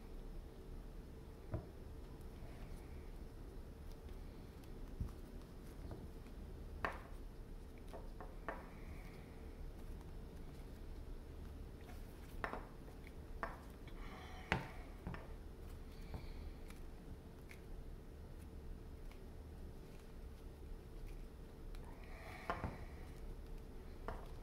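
Soft clay squishes and rubs between fingers.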